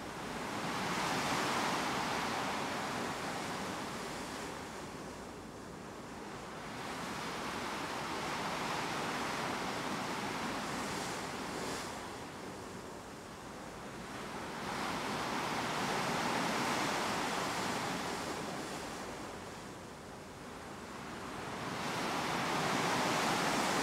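Wind rushes steadily past, rising and falling in gusts.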